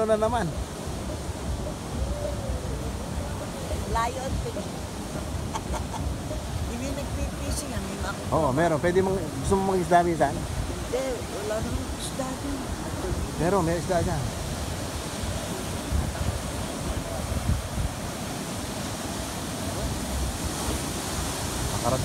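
Waves crash and rush onto a beach, heard outdoors in wind.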